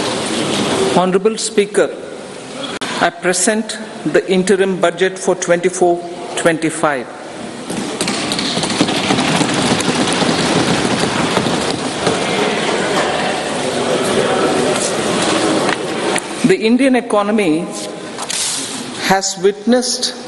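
A woman speaks steadily into a microphone in a large hall.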